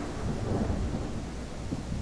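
Rain falls steadily in the night.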